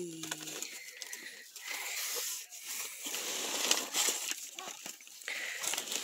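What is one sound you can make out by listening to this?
A hand brushes over a glossy package.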